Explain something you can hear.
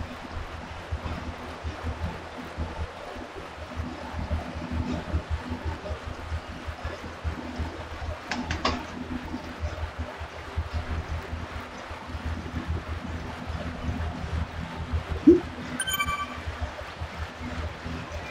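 A young woman breathes heavily close to a microphone.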